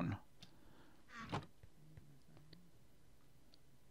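A wooden chest lid creaks shut.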